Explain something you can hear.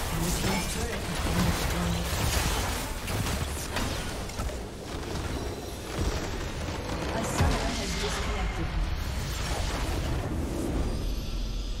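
Game spells and attacks crackle and blast in a fight.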